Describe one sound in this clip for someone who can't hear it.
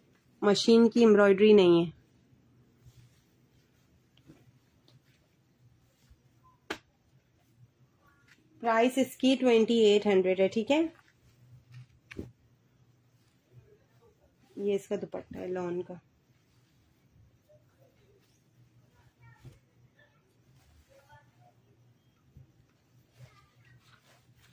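Fabric rustles softly as it is unfolded and handled.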